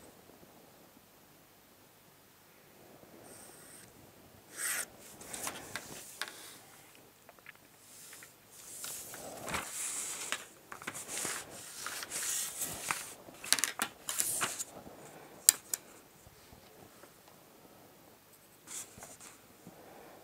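A pencil scratches along paper.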